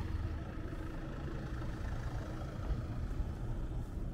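A car drives past slowly.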